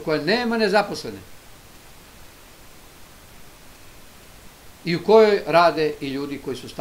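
An elderly man speaks calmly into a microphone, with a pause between phrases.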